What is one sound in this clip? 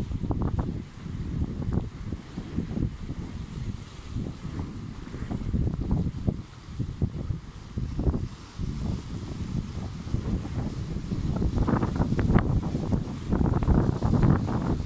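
Waves wash against rocks in the sea.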